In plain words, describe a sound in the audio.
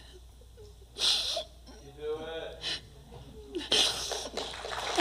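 A young woman sobs with a shaky voice.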